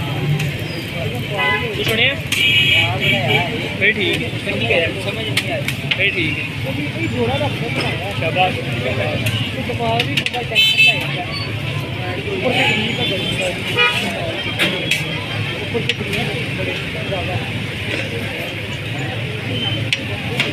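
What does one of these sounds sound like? A metal spatula taps and scrapes against a metal griddle.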